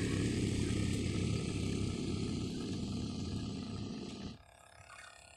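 A small motorboat's engine drones.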